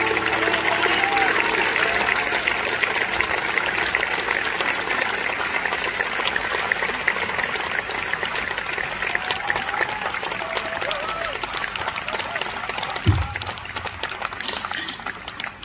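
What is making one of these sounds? A crowd cheers and claps loudly.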